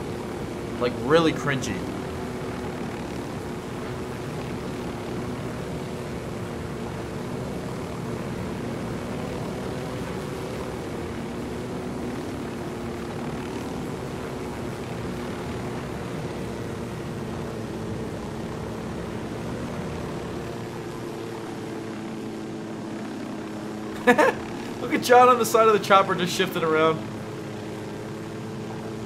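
A helicopter's rotor drones steadily overhead.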